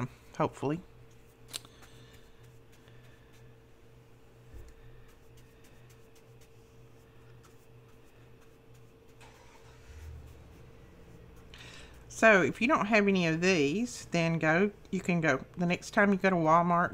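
A brush softly swishes as it spreads glue on paper.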